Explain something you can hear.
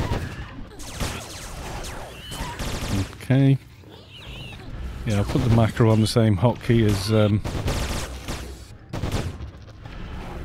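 Spell effects whoosh and crackle in quick bursts.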